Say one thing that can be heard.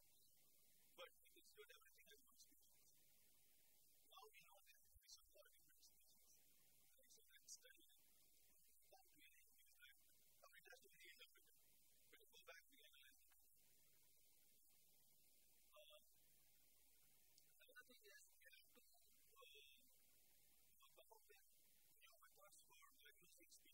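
A man lectures calmly in a room with a slight echo, heard from across the room.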